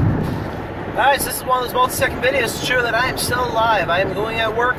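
A young man talks animatedly close by.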